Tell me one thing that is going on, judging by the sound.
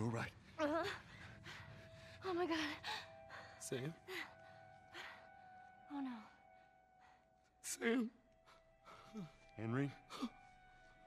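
A young girl answers in a weak, shaky voice.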